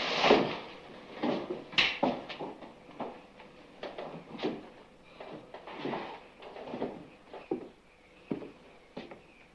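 Heavy footsteps thud on a wooden floor.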